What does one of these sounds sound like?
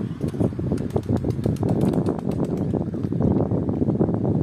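A bird flaps its wings overhead.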